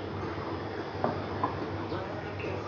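A ceramic cup clinks onto a saucer.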